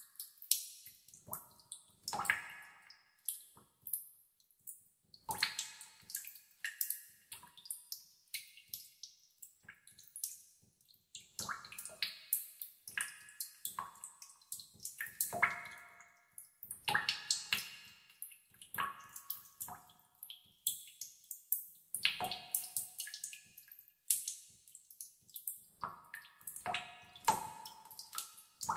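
Water drops plop and drip into still water, one after another.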